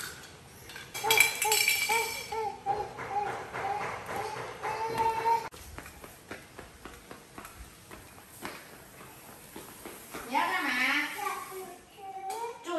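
A toddler babbles and squeals.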